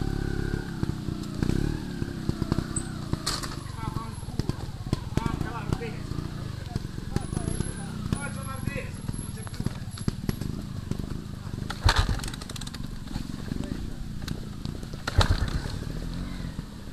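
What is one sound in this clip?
A motorbike engine revs further ahead.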